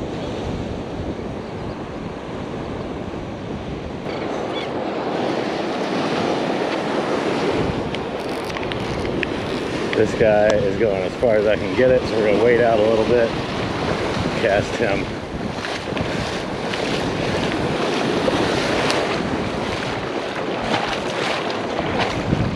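Wind blows across the microphone outdoors.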